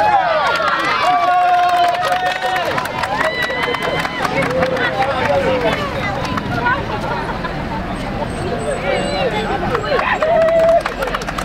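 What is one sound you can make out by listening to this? A crowd of men and women chatters and shouts outdoors.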